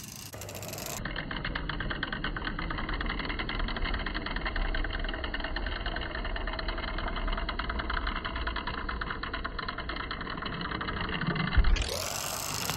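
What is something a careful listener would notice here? A toy car's pull-back motor whirs with fast clicking.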